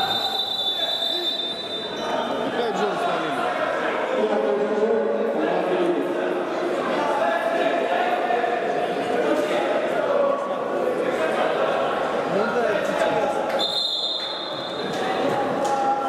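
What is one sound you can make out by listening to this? A crowd of spectators chants and shouts in a large echoing hall.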